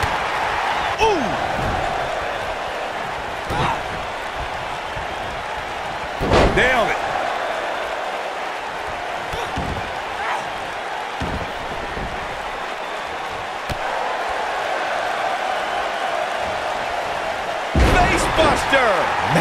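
Bodies thud hard onto a wrestling ring's mat.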